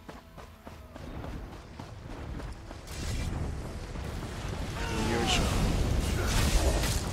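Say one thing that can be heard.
Fire roars and crackles, growing louder.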